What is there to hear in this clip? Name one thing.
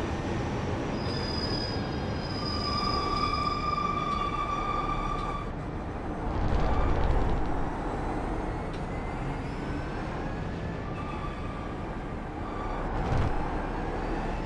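A racing car engine roars and whines as it shifts through the gears.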